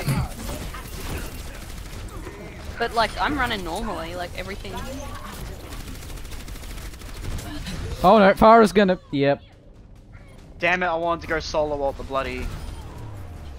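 Gunfire rattles from a video game.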